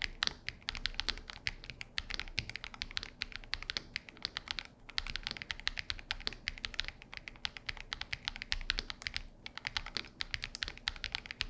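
Keys on a mechanical keyboard clack rapidly and steadily as someone types.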